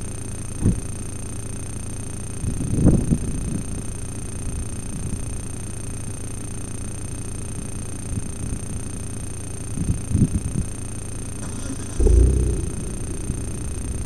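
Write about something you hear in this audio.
Wind blows in low, rumbling gusts outdoors.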